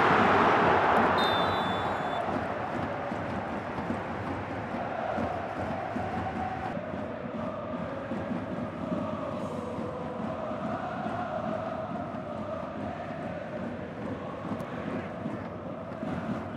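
A large stadium crowd roars loudly, then settles into a steady murmur of chanting.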